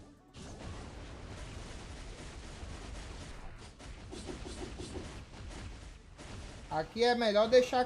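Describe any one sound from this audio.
Video game battle effects whoosh and crash.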